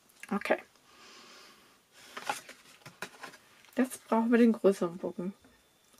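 Stiff paper card rustles and slides as it is handled.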